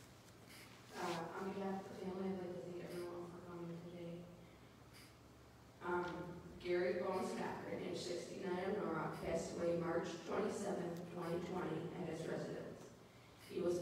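A second woman speaks steadily into a microphone, heard over loudspeakers in an echoing hall.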